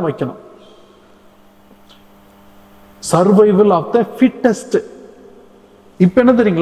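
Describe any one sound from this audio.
An elderly man preaches with emphasis into a microphone, in an echoing room.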